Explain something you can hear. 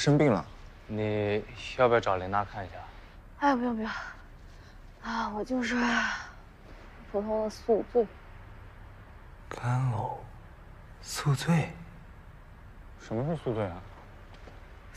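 A young man asks a question in surprise.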